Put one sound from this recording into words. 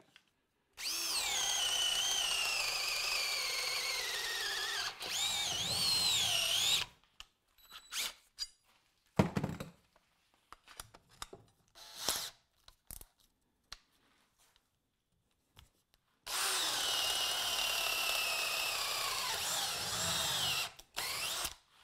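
A cordless drill whines as an auger bit bores into wood, slowing as it goes deeper.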